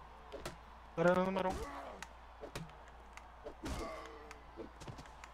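A man grunts and cries out in pain.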